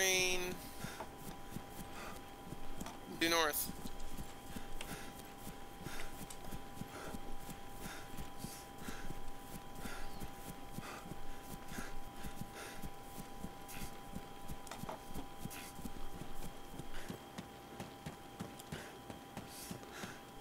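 Footsteps rustle through tall grass at a steady pace.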